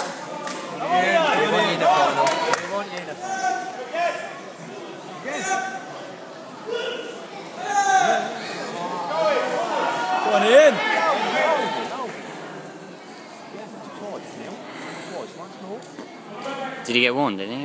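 Men in a crowd talk and murmur nearby in a large echoing hall.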